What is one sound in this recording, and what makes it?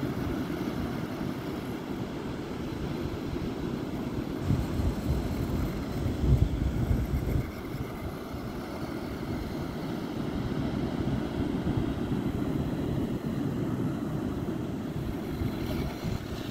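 Waves break and wash in the distance.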